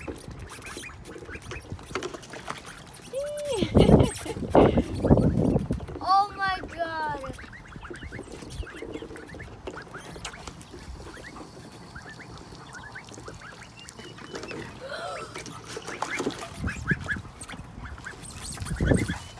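Ducks splash and paddle in shallow water.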